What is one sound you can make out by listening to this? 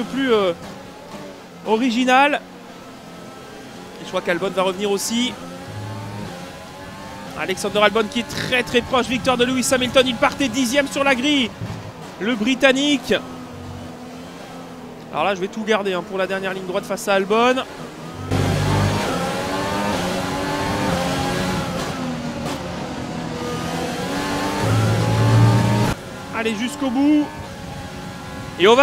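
A racing car engine screams, rising and falling in pitch as the car speeds up and brakes.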